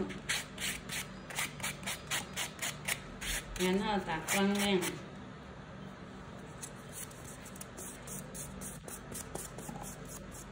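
A nail file rasps back and forth in quick, rhythmic strokes.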